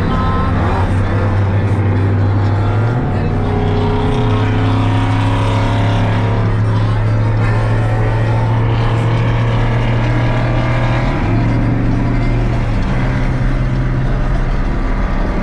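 A car engine drones loudly from inside the car, its pitch shifting as it changes gear.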